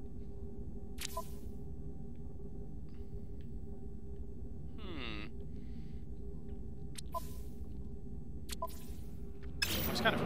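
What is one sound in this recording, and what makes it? Menu selections click with short electronic blips.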